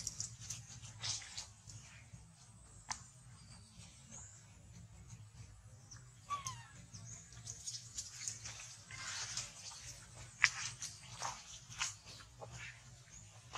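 Monkeys rustle through dry leaves and grass.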